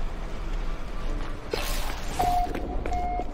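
A sliding door opens with a hiss.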